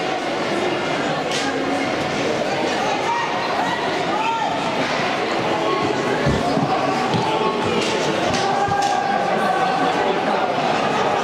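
A crowd of spectators murmurs and calls out in an echoing rink.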